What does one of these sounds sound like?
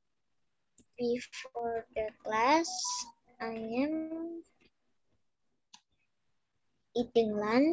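A child talks animatedly over an online call.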